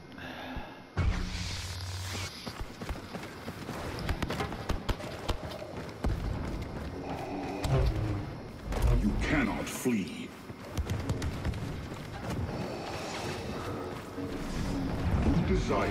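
Heavy footsteps thud steadily on a hard floor.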